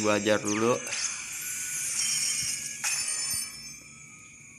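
A video game plays a bright, sparkling chime as an egg cracks open.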